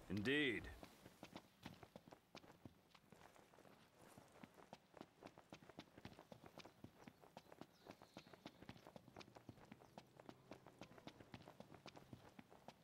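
Footsteps run quickly over dry ground.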